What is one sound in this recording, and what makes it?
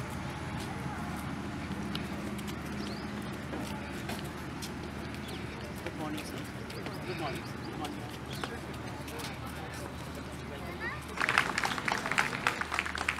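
Boots stamp in step on pavement as a group marches.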